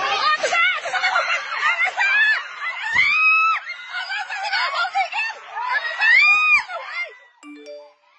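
A young man yells loudly close by.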